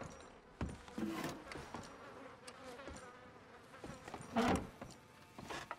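A wooden drawer slides open and shut.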